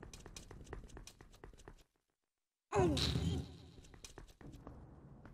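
Quick light footsteps patter on a stone floor.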